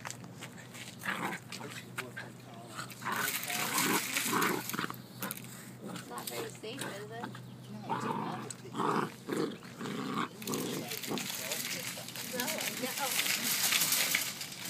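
Puppy paws scuffle on gritty ground.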